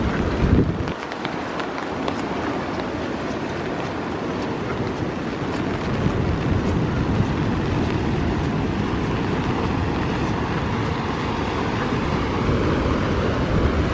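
Rain patters steadily on a stone path.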